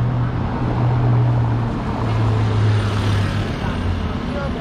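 A motor scooter engine hums close by and passes.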